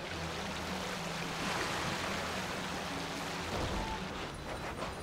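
A small boat churns through water.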